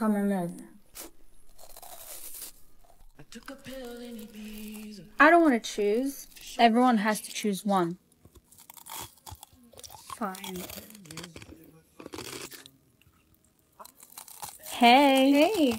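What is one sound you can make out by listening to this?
Crunchy food is chewed loudly close to a microphone.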